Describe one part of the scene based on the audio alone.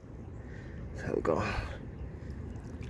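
Shallow water splashes around a hand.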